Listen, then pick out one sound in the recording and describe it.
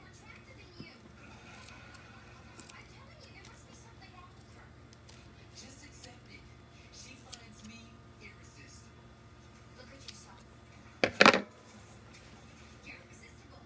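Paper rustles and crinkles in hands.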